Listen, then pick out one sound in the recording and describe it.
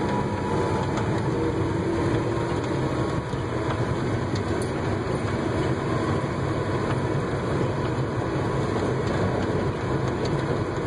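Tyres hiss on a wet, slushy road.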